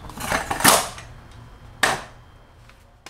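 A stool thumps down on a hard floor.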